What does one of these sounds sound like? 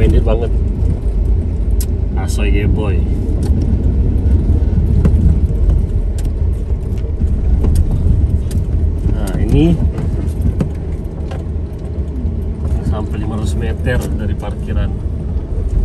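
Tyres crunch and bump over a rough dirt road.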